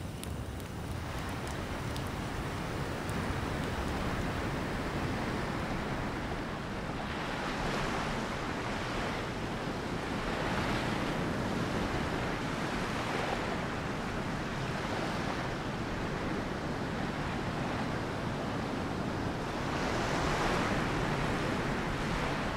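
Waves wash onto a beach in slow, repeated surges.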